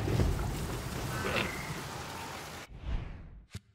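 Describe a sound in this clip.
Waves wash against a shore in a steady rush.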